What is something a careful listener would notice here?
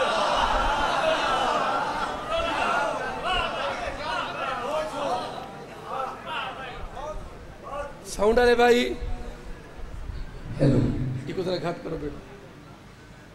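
A man speaks with passion into a microphone, heard through loudspeakers in an echoing hall.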